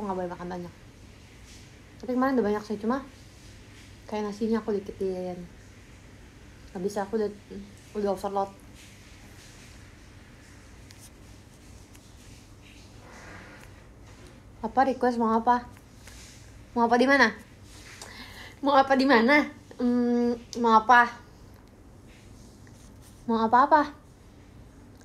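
A young woman talks animatedly and close to the microphone.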